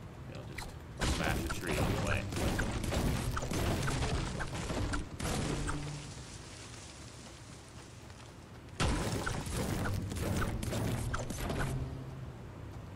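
A pickaxe strikes wood and stone with repeated sharp thuds.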